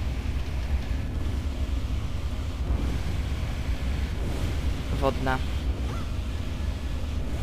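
A low wind rumbles steadily.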